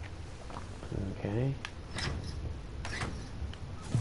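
A metal lever clanks as a hatch is pulled open.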